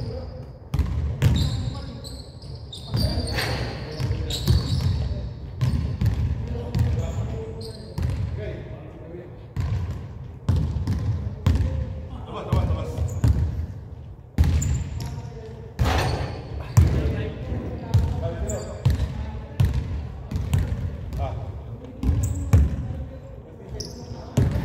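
Basketballs bounce on a wooden court in a large echoing gym.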